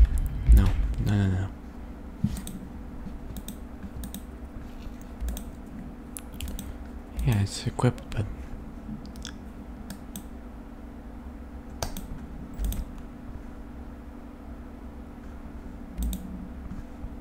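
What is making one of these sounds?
Short soft clicks and blips sound as menu options are picked.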